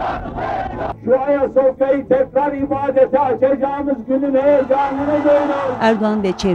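An elderly man shouts forcefully to a crowd through a loudspeaker.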